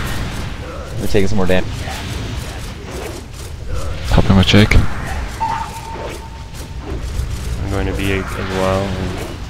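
Fiery spells burst and roar in a battle.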